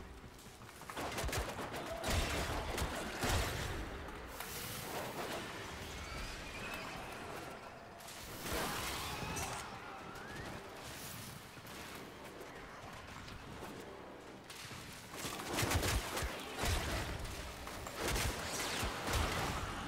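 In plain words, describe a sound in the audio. Heavy hits thud and crash in bursts.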